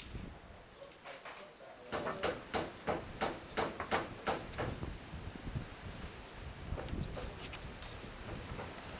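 Roof tiles clack and knock against each other as they are handled.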